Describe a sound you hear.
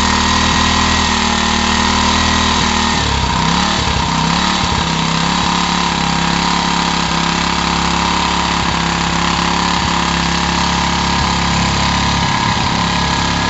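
A small engine runs loudly and steadily, its pitch shifting briefly near the start.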